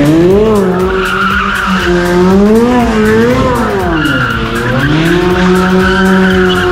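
Tyres squeal on the pavement as a car drifts.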